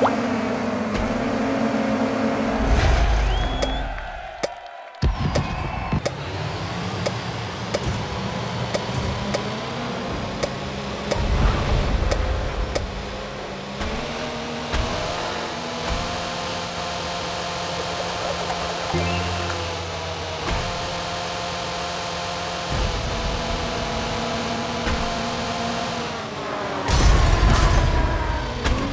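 A racing car engine hums steadily.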